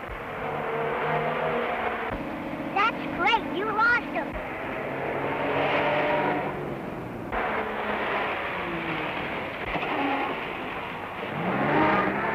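A vintage car engine rumbles as the car drives along a street.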